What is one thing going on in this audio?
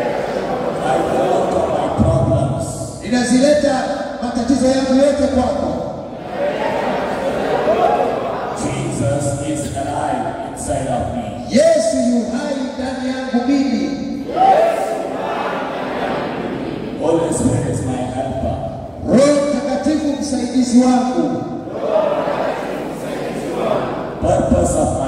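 A man speaks fervently into a microphone, heard over loudspeakers in an echoing hall.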